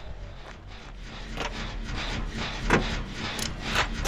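A generator engine rattles and clanks as it is repaired.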